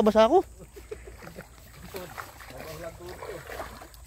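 Feet wade and splash through shallow water.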